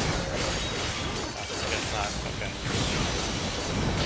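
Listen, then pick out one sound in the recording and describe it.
Laser beams fire with a buzzing roar.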